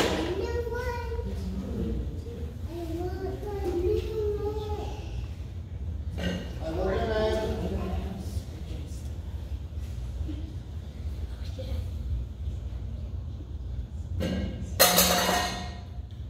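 Children talk and call out nearby in a large echoing hall.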